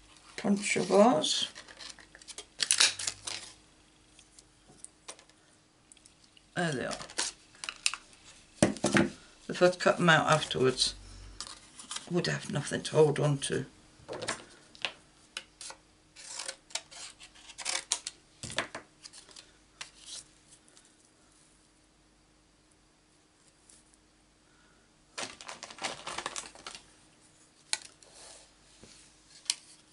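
Stiff paper rustles and crinkles as it is handled.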